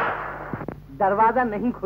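A man sings in a wavering voice, heard through an old, muffled recording.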